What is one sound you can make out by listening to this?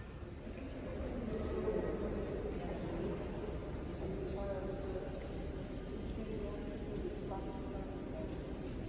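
Visitors' voices murmur softly in a large echoing hall.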